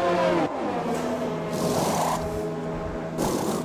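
Pneumatic wheel guns rattle in short bursts.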